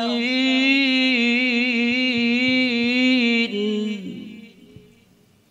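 A man chants in a long, sustained melodic voice through a microphone.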